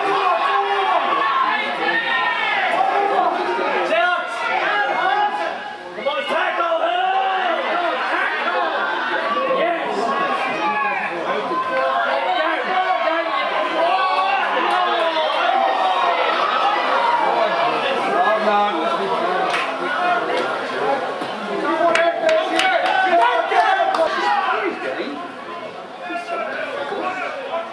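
Rugby players shout to each other on an open field.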